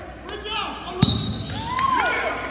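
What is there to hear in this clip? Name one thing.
A referee blows a whistle sharply once.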